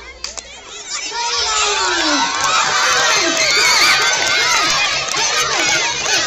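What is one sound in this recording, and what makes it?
A crowd of children cheers and shouts loudly outdoors.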